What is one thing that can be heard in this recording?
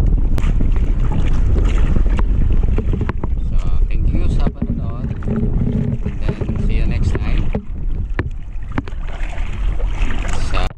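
Water splashes and sloshes against the side of a small boat.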